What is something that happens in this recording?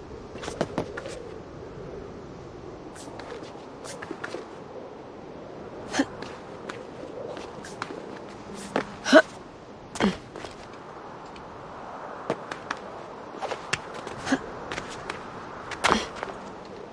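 A climber's hands and boots knock and scrape against rock.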